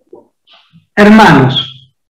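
A man speaks through a microphone on an online call.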